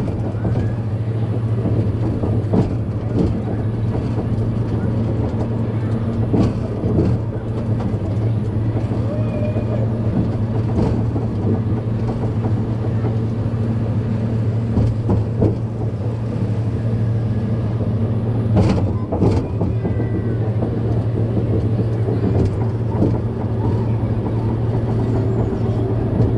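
Track joints clack under a ride car now and then.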